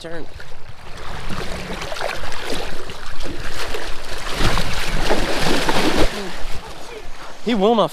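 Water splashes loudly as a fish is netted close by.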